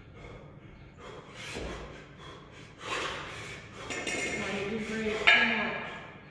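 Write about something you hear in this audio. A man breathes hard in sharp bursts.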